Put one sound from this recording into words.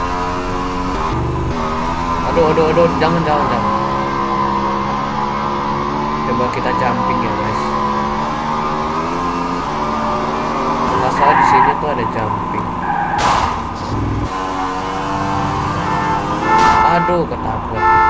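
A motorcycle engine roars and shifts pitch as it speeds along.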